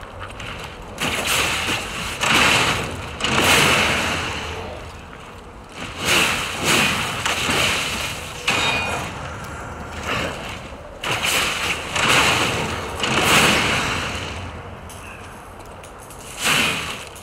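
Metal blades clash and scrape in a sword fight.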